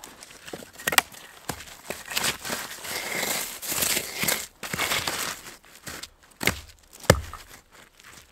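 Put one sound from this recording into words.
Wood knocks and cracks as a man splits kindling.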